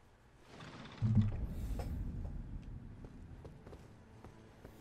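A heavy stone door rumbles open.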